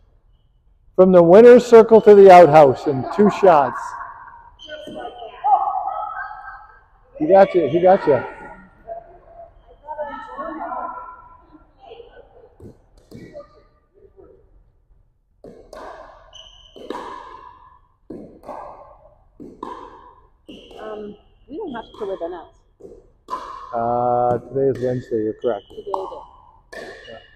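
Women talk and call out loudly across an echoing hall.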